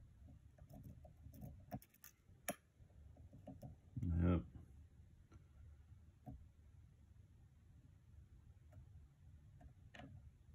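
Metal lock picks click and scrape softly inside a lock.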